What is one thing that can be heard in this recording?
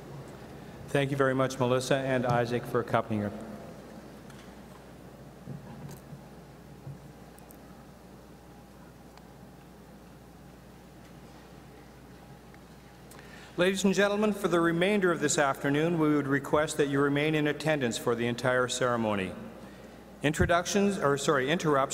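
A middle-aged man speaks calmly into a microphone over loudspeakers in a large echoing hall.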